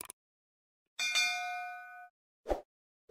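A small bell chimes and rings out briefly.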